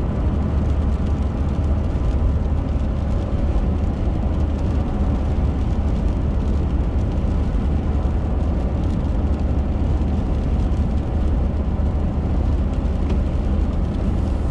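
Raindrops tap lightly on a windscreen.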